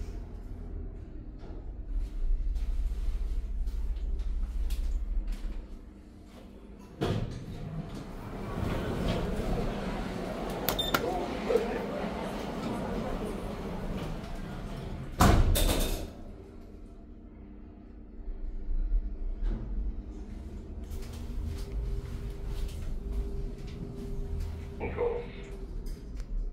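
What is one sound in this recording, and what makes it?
An elevator hums low as it moves.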